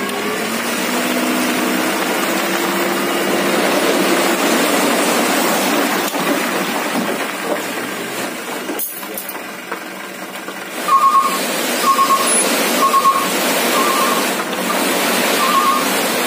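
Dirt and rocks slide and pour out of a truck onto the ground.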